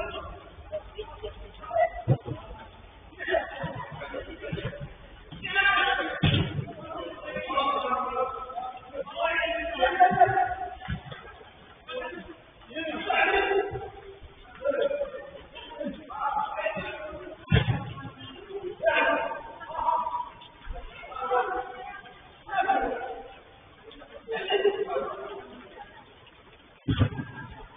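Young men shout and call out to each other across an echoing indoor pitch.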